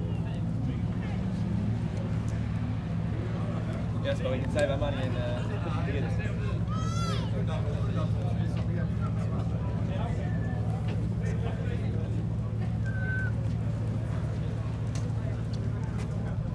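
People talk in the background outdoors.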